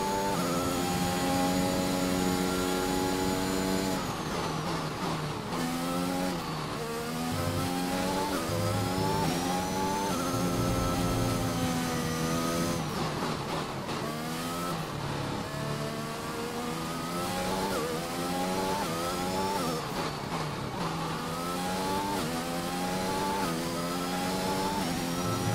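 A racing car engine roars and whines, rising and falling in pitch as it shifts gears.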